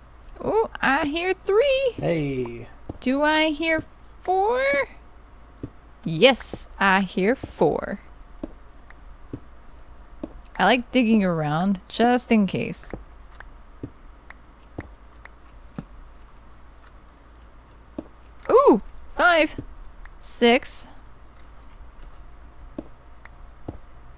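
A pickaxe chips at stone with quick, dull knocks.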